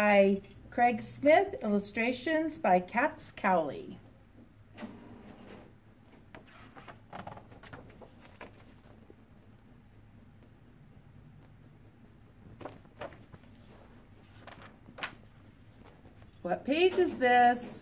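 A woman reads aloud with animation, close by.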